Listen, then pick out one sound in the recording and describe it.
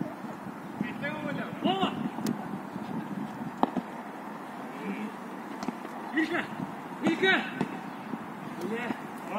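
Young men shout to each other across an outdoor field.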